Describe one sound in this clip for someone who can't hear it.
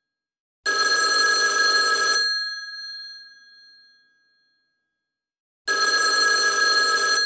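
An old telephone bell rings loudly in bursts, each ring fading away.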